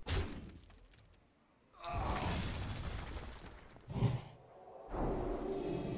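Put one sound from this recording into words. A young man talks into a microphone with animation.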